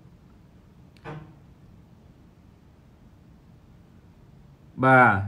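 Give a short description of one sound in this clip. A man speaks briefly and quietly, close by.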